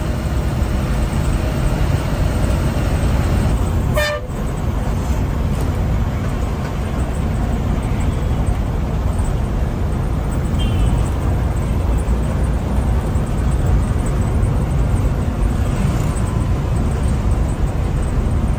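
A vehicle engine rumbles steadily while driving along a road.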